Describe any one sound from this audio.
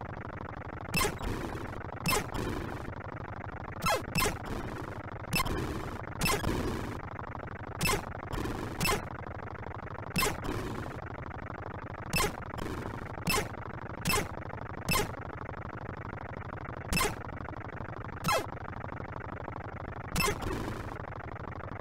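Electronic game shots zap again and again.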